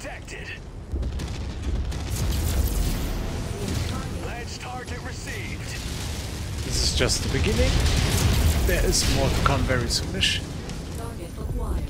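Laser and cannon fire blasts and crackles in battle.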